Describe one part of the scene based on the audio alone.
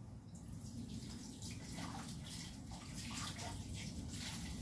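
Water splashes in a sink.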